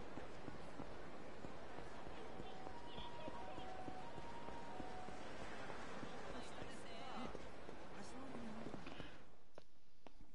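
Footsteps walk along a street.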